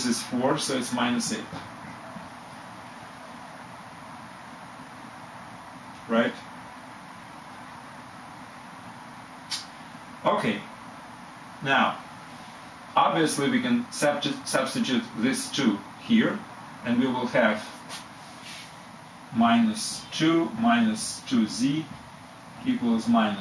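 A man speaks calmly and clearly nearby, explaining in pauses.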